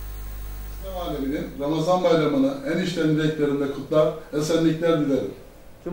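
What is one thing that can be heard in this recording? An older man speaks with animation, close up.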